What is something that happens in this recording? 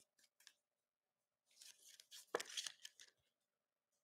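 A trading card slides into a rigid plastic card holder.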